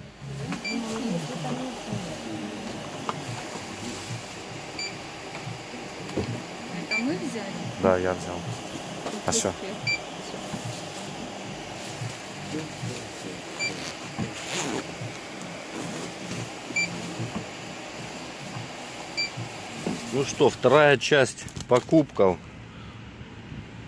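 A plastic bag rustles as items are packed into it.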